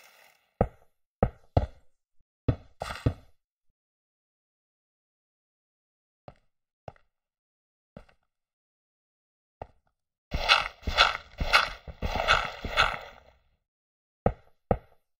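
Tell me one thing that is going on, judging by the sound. Stone blocks clack as they are set down one after another.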